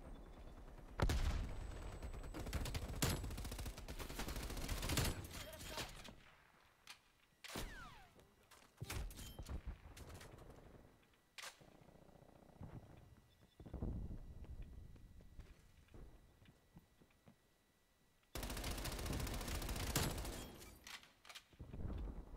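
Rapid gunfire bursts from a game, heard up close.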